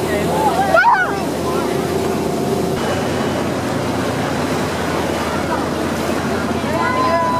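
Water churns and splashes steadily behind a moving boat.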